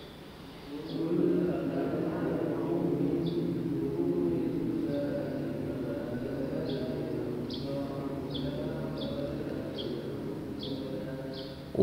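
An elderly man speaks softly and calmly through a microphone.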